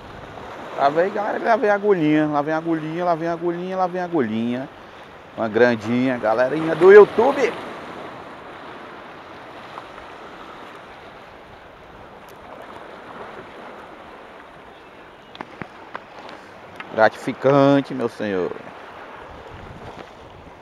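Waves wash and splash against rocks.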